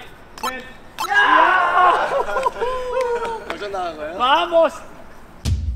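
A young man shouts and cheers excitedly outdoors.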